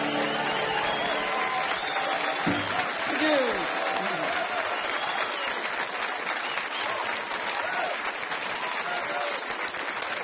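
People in a crowd whistle.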